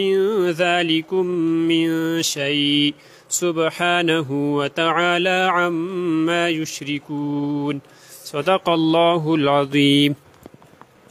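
A young man chants a recitation in a melodic voice through a microphone.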